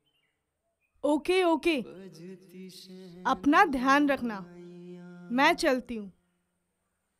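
A young woman speaks sharply, close by.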